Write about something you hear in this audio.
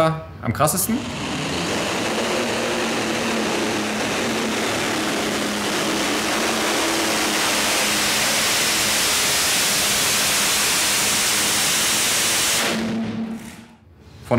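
A tractor engine roars loudly and steadily in a large echoing hall.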